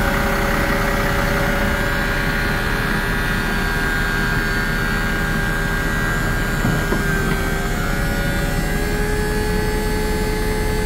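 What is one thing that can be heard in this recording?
A truck's diesel engine idles with a steady, loud rumble and hum.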